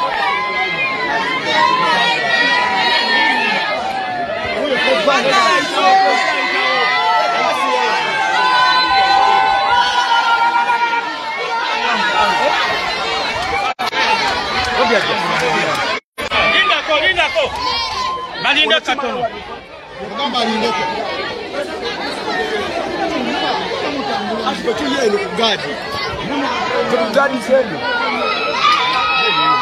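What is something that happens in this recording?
A large crowd shouts and chatters excitedly close by.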